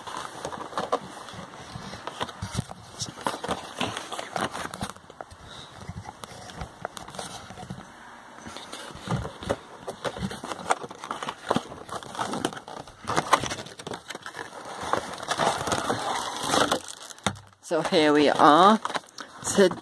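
A boxed toy's plastic packaging rustles and knocks as it is handled.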